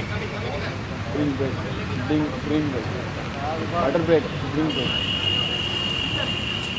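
Young men call out to each other outdoors, some distance away.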